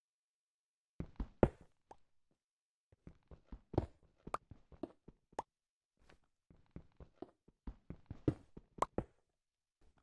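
A pickaxe strikes stone in quick, repeated knocks.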